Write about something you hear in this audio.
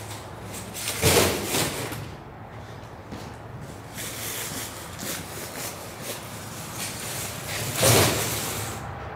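A case of bottled water thuds down onto a metal step.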